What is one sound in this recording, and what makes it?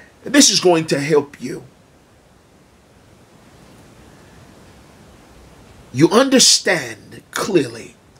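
A man speaks calmly and closely into a microphone, pausing between phrases.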